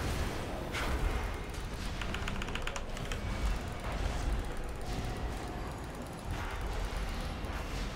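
Magic spells whoosh and chime in a video game.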